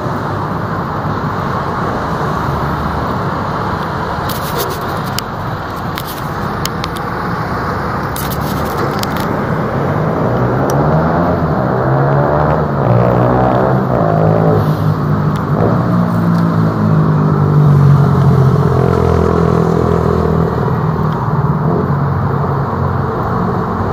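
Traffic rumbles past on a city street.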